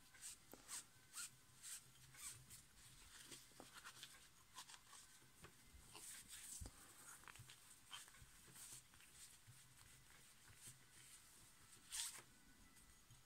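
A cloth rubs and squeaks against a plastic wheel.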